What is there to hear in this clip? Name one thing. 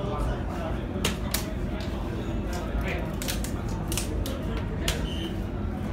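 Soft-tip darts thud into an electronic dartboard.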